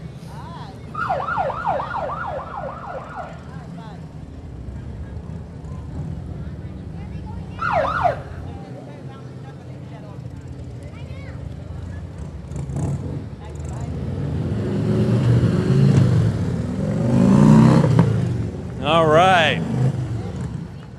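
Police motorcycle sirens whoop in short bursts.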